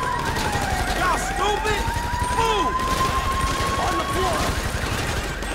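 A police siren wails and rises.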